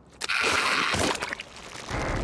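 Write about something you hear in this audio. A heavy body hits the ground with a thud.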